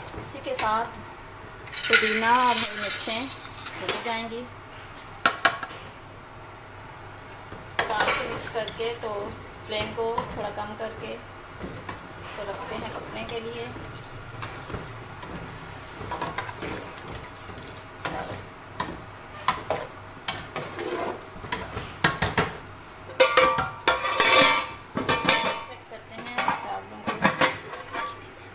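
A metal ladle scrapes and clinks against a metal pot while stirring a thick liquid.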